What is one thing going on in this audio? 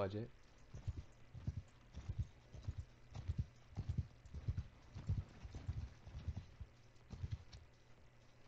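Horse hooves thud in a steady gallop.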